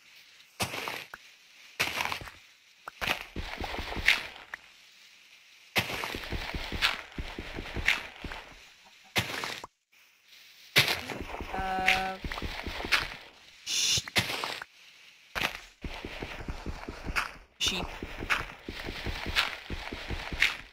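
Dirt blocks crumble with short crunching sounds.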